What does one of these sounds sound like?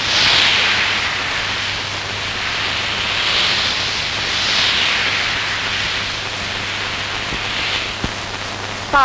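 Ocean waves surge and crash on a shore.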